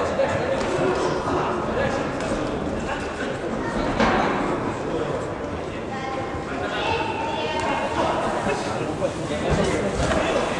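Boxers' shoes shuffle and squeak on the ring canvas.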